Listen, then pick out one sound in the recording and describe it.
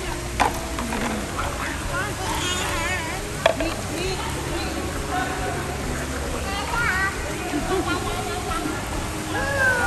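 Water splashes and laps gently.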